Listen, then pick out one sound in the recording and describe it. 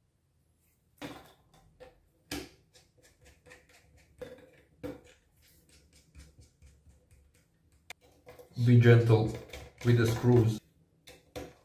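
Small metal and plastic parts click and tap as they are handled.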